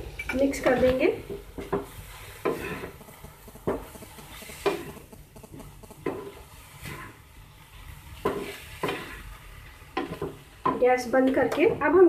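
A wooden spatula scrapes and stirs food in a pan.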